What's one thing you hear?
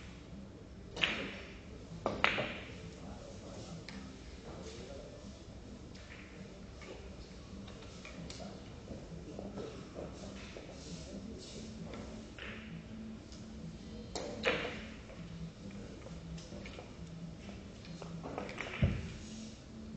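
Billiard balls clack against each other with sharp clicks.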